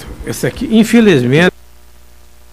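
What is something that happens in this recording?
A man speaks briefly through a microphone in a large room.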